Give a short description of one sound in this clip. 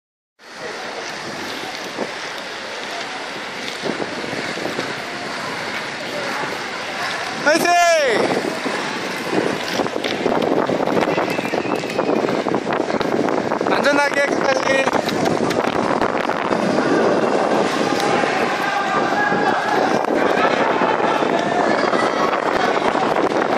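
Inline skate wheels roll and scrape on asphalt.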